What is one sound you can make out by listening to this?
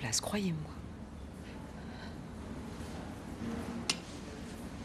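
A woman speaks calmly and gently nearby.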